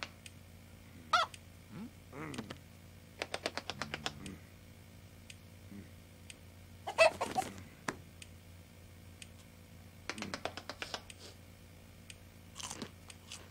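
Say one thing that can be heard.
A chicken clucks.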